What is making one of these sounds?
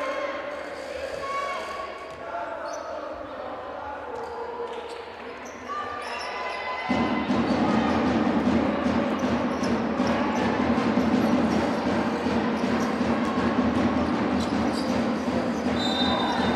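Sneakers squeak sharply on a court.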